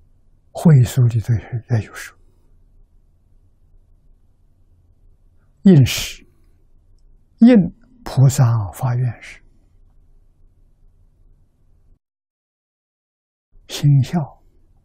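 An elderly man speaks calmly into a close microphone, in short phrases with long pauses.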